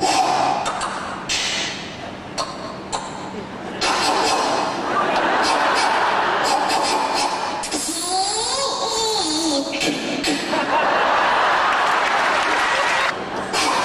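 A young boy speaks loudly and with animation in a large echoing hall.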